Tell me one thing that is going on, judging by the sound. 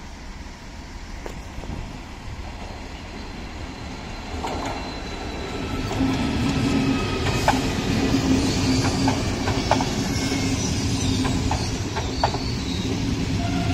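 A high-speed train approaches and rushes past with a growing roar.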